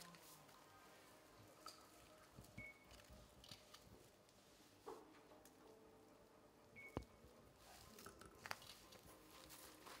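Dry straw rustles and crackles as it is bundled by hand.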